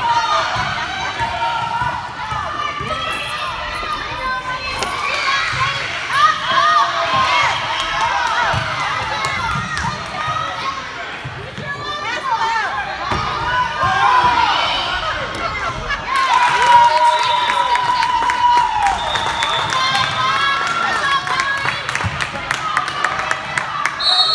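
A crowd of spectators cheers and calls out in a large echoing gym.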